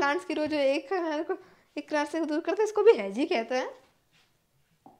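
A young woman speaks clearly and calmly into a close microphone.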